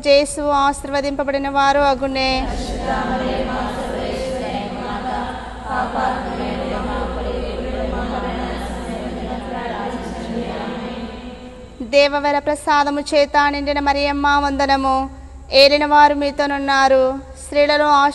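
A young woman sings a prayer loudly and fervently, close by.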